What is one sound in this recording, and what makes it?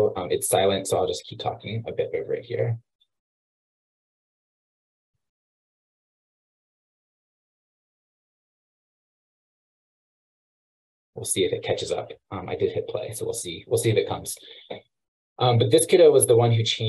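A man speaks calmly over an online call, pausing between phrases.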